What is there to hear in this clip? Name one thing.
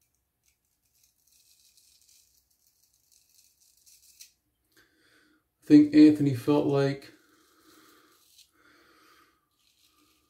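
A razor scrapes softly over stubble.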